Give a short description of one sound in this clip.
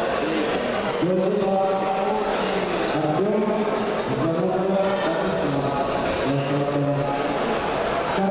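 Voices shout encouragement from the crowd.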